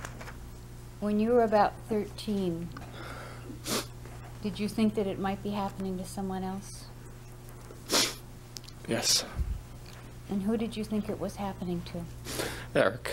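A young man speaks haltingly into a microphone.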